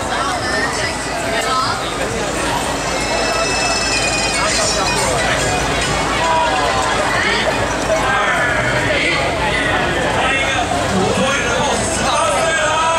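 A large outdoor crowd chatters and calls out all around.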